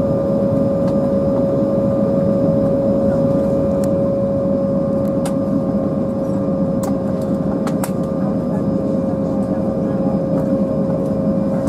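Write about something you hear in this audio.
An airliner rumbles as it taxis.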